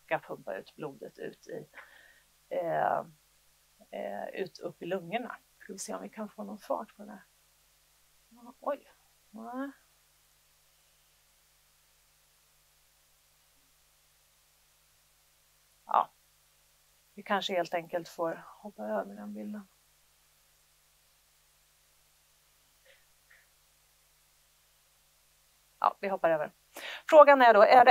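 A woman lectures calmly through a microphone, pausing often.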